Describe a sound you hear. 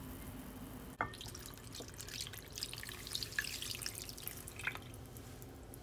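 Sauce pours and splashes into a dish.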